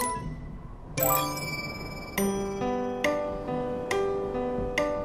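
A piano plays a bright melody of ringing notes.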